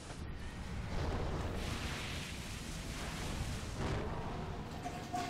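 Magic blasts and fiery explosions burst and crackle in a video game battle.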